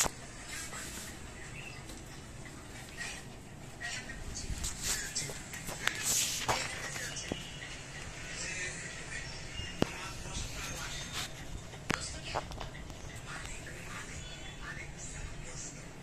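A puppy's claws click and scrape on a hard floor.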